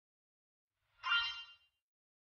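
A bright magical chime tinkles briefly.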